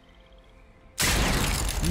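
A magical beam strikes with a loud, rushing burst of sound.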